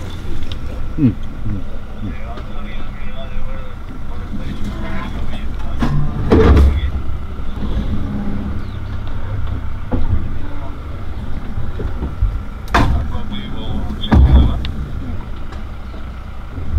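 A vehicle engine rumbles steadily at low speed.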